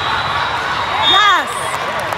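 Young girls shout and cheer loudly.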